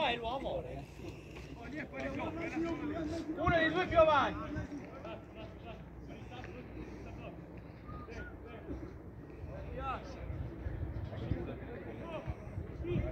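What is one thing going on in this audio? Young men shout to each other across an open field, heard from a distance.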